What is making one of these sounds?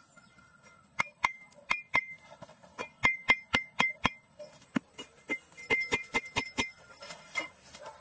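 A metal blade chops sharply into hard soil, again and again.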